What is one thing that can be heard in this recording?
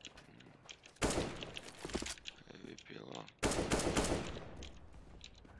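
A rifle fires loud bursts of shots.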